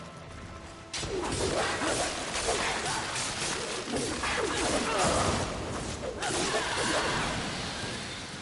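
Blades slash and clang in a fierce fight with a monster.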